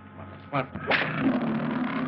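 A lion roars.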